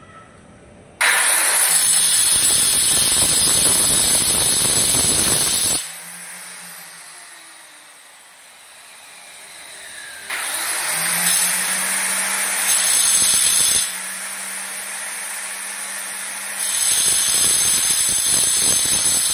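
An angle grinder whines loudly as it cuts through tile.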